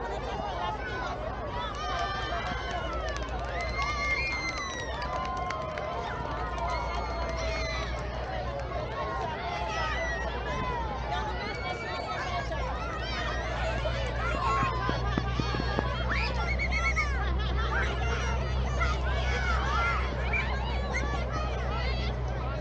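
A crowd of children and adults chatter and shout outdoors in an open field.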